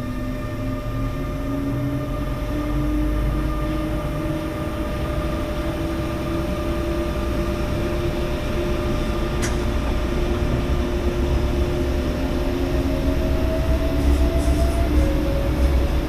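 A train hums steadily as it rolls along the tracks.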